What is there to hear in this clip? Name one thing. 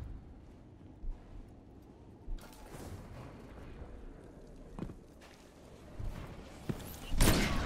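Footsteps patter softly on a hard floor.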